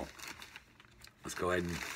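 A foil bag crinkles in a hand.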